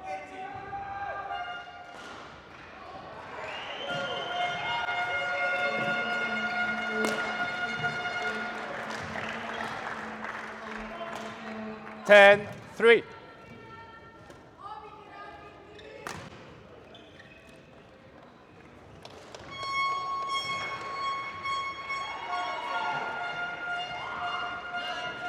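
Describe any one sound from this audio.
A shuttlecock is struck sharply by rackets in a large echoing hall.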